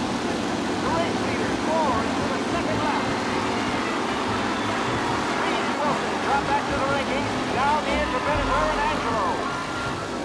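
Tyres skid and squeal on the track.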